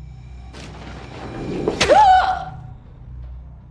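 A young woman screams in fright.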